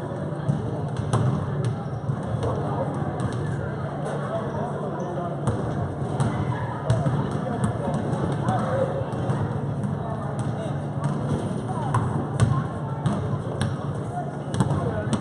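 A basketball bounces on a hard floor, echoing in a large gym.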